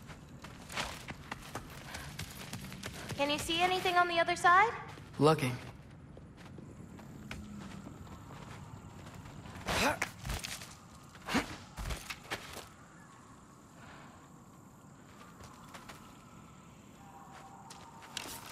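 Footsteps crunch on rocky ground.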